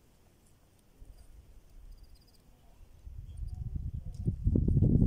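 Wind gusts into the microphone outdoors, growing stronger toward the end.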